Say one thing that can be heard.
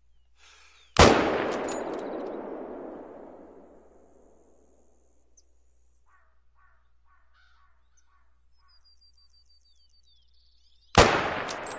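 A rifle shot cracks loudly and echoes away.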